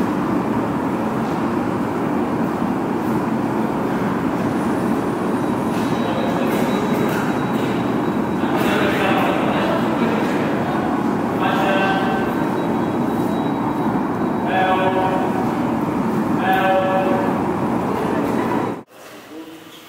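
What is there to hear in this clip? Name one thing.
A large crowd murmurs and calls out in a large echoing hall.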